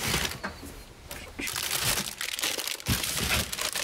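A plastic bag rustles as it is handled.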